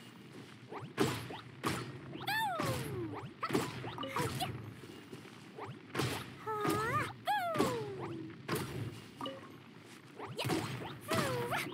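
Explosions burst again and again.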